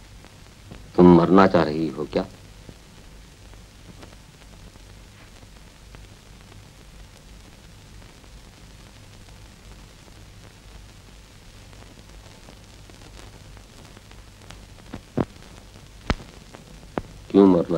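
An elderly man speaks gently and warmly, close by.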